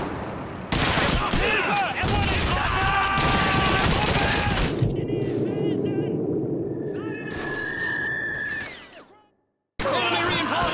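Explosions boom on a battlefield.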